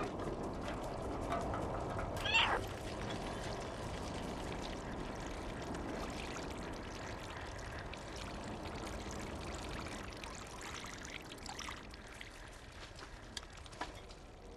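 A cat's paws patter softly over loose rubble.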